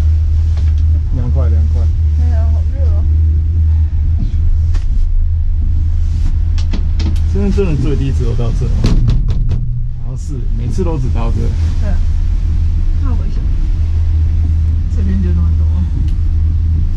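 A young person speaks nearby in short bursts.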